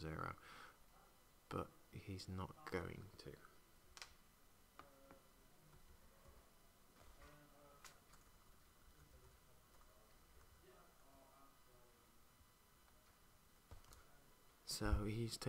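Playing cards are slid and tapped onto a soft mat.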